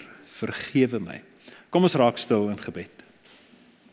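An older man speaks through a microphone in a large echoing hall.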